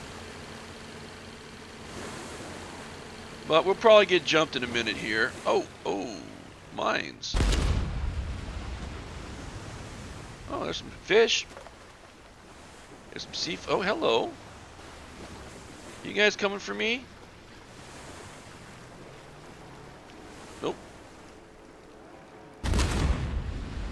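Water splashes and rushes against a moving boat's hull.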